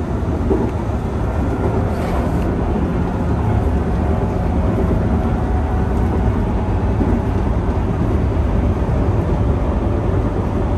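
A train rumbles steadily along the rails, heard from inside the cab.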